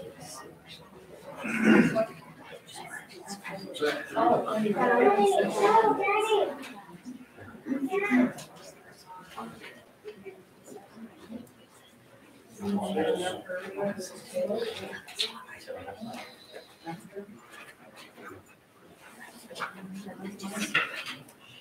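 Several adults talk quietly among themselves in a room.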